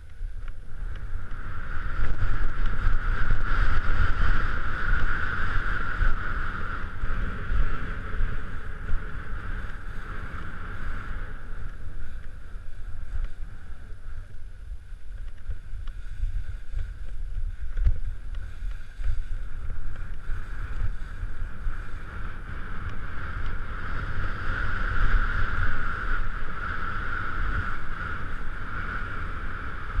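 Wind rumbles loudly across a close microphone.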